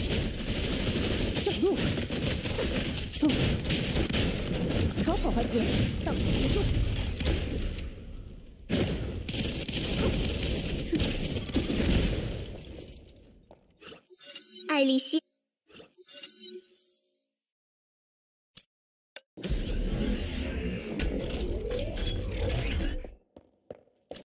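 Game combat effects clash, crackle and boom loudly.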